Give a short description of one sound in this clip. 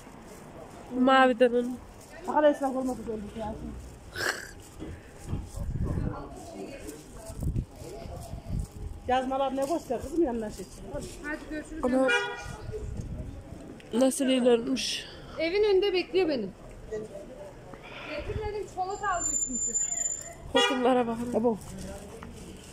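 A woman talks close by in a calm voice.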